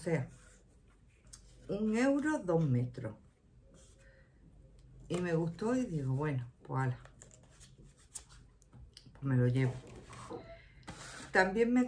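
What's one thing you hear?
A middle-aged woman talks calmly and close to the microphone, with pauses.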